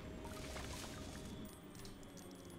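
A magical shimmering whoosh swirls and fades.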